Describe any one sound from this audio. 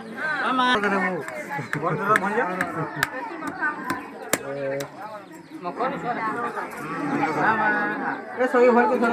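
Several women talk and call out with animation close by.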